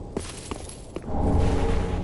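A glowing magic arrow whooshes as it is fired.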